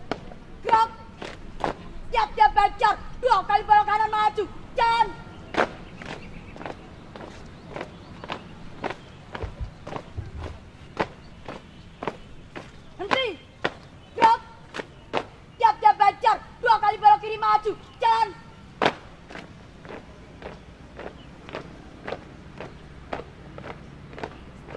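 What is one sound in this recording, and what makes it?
Feet stomp on pavement in a steady marching rhythm.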